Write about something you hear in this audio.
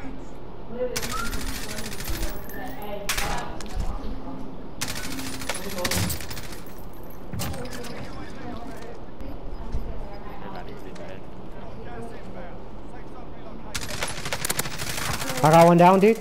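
Rapid gunfire bursts out in short, loud volleys.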